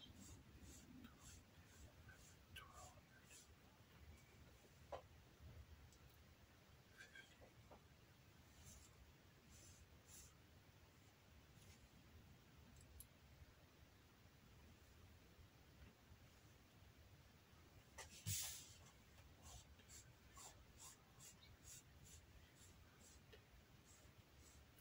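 Leather rustles as hands move it on a cutting mat.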